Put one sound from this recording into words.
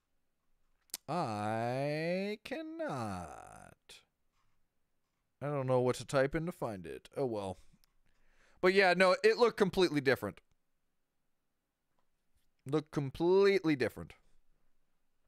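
A young man speaks calmly and close into a microphone, in short bursts with pauses.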